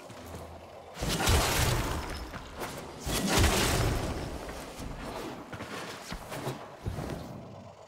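Crackling electric energy bursts in loud whooshing blasts.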